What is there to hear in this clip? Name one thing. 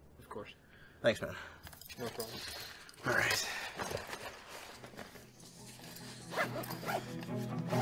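Items rustle and clatter as a man rummages in a car trunk.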